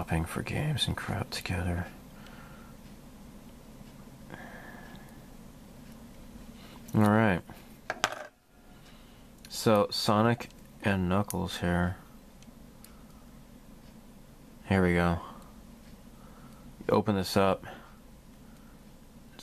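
Small plastic parts click and rattle as they are handled.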